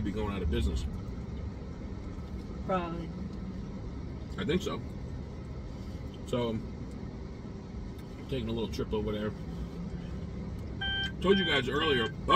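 A low steady hum fills the inside of a car.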